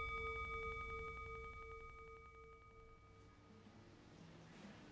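A singing bowl rings and slowly fades.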